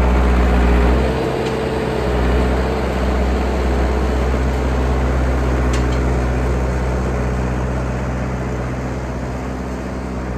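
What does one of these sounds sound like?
Metal tracks clank and squeak over snow.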